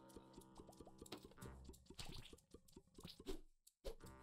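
Rapid soft shots pop from a small game creature.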